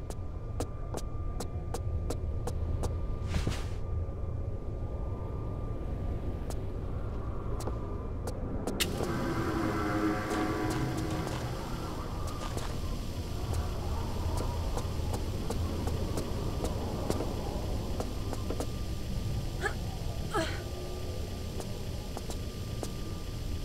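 Footsteps clank quickly on metal steps.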